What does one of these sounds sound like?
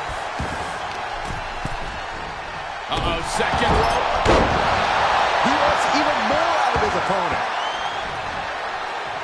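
A large crowd cheers and roars in a big echoing arena, swelling louder partway through.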